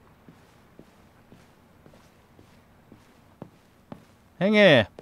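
Footsteps tap slowly across a floor.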